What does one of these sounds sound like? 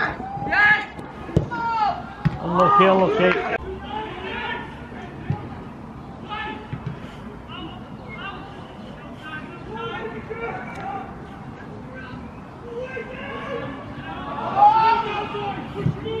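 Young women players shout and call out to each other across an open pitch.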